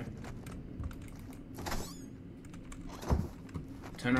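A wooden cupboard door opens with a creak and a knock.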